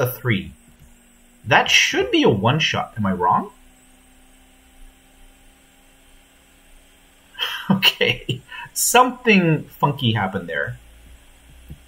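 A man talks with animation, close to a microphone, in short bursts with pauses.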